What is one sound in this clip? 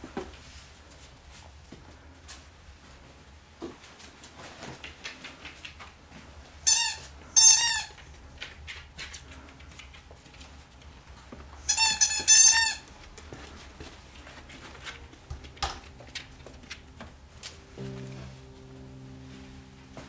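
A dog's claws tap and patter on a hard floor.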